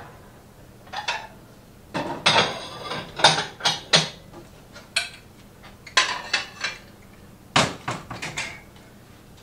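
Dishes clink and clatter as they are put away.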